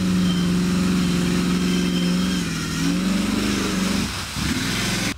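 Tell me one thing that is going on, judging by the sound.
Mud and water splash and spray against a truck.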